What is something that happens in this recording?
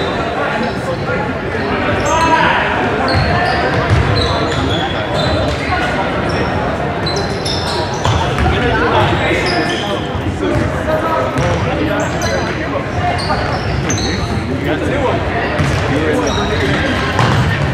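Spectators chatter and call out in a large echoing gym.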